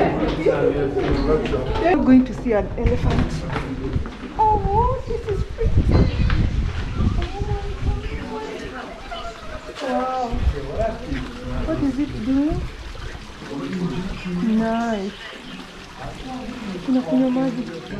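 A woman talks quietly close by.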